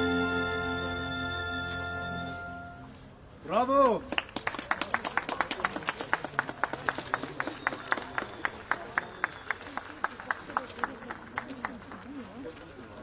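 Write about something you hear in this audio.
A string ensemble plays a sustained chord, then a quick, bouncing passage outdoors.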